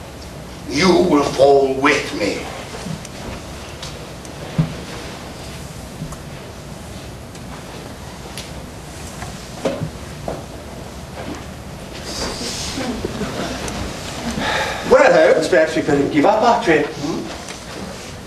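Adult men speak lines on a stage, heard from the audience in a hall.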